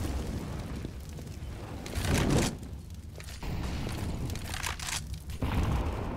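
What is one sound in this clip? Fire crackles and roars close by.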